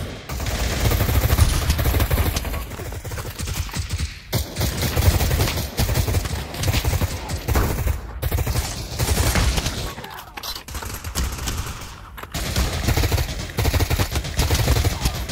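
A rifle fires rapid bursts of loud shots at close range.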